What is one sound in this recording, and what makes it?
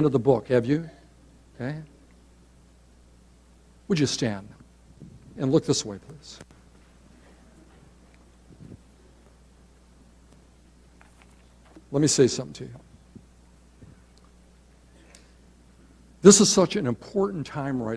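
A middle-aged man preaches with animation through a microphone in a large hall, pausing between phrases.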